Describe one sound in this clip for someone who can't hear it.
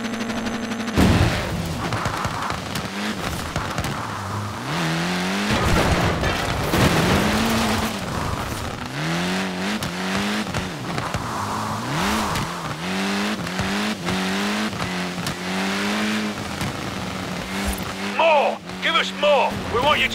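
A rally car engine roars, revving up and down as gears shift.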